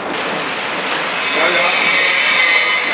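A packaging machine hums and clatters steadily.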